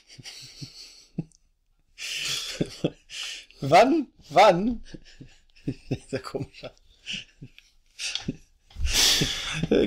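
Two men laugh together.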